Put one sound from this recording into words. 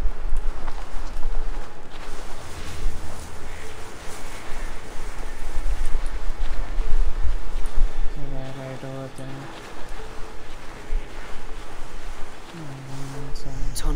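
Tall grass rustles as footsteps creep softly through it.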